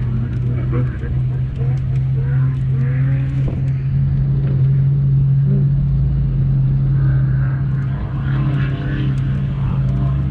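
A buggy engine idles with a steady low rumble.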